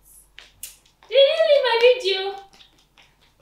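A girl speaks excitedly.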